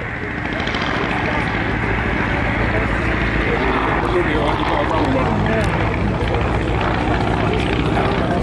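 A propeller plane's engine drones overhead, rising and falling as it passes.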